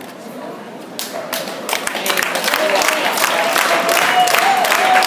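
Spectators clap and cheer.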